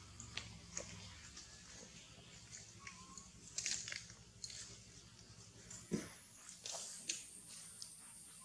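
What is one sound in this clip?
A macaque gnaws on a twig.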